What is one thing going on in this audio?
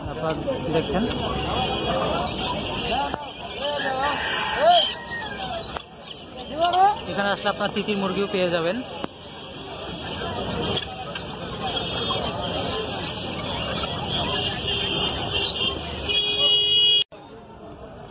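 Guinea fowl chirp and call from close by.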